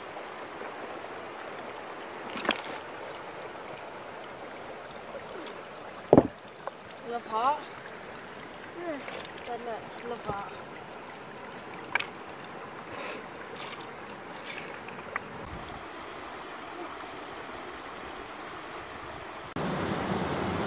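A small stream trickles softly over stones.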